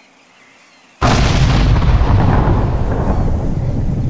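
A loud explosion booms and rumbles in the distance.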